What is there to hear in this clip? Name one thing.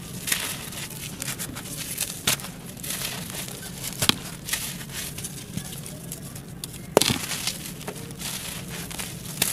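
Clumps of earth crack and break apart in hands.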